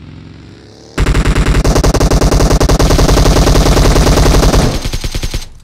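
A rifle fires in rapid, loud bursts close by.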